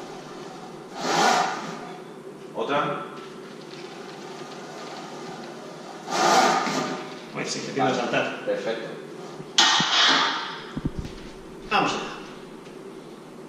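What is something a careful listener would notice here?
A man breathes out sharply and strains with each squat.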